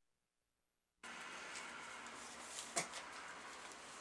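A folding chair clatters and knocks on the floor.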